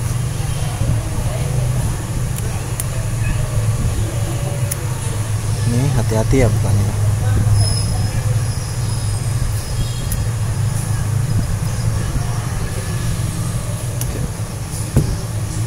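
Metal tweezers scrape and click against a phone's frame.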